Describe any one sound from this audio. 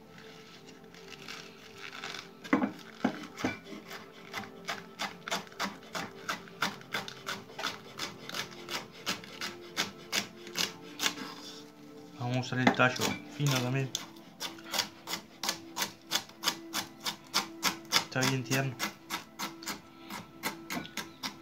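A knife chops quickly and steadily on a wooden cutting board.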